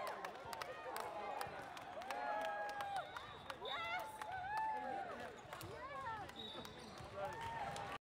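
Young men cheer and shout together in a large echoing hall.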